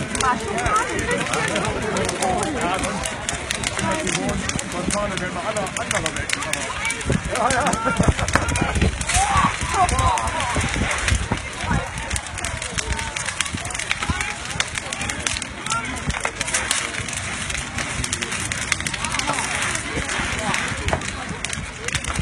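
A large fire roars and crackles outdoors.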